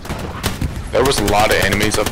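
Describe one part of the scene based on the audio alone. A rifle fires a loud single shot.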